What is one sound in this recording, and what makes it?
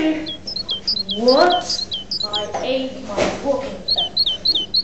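A boy speaks with animation close by.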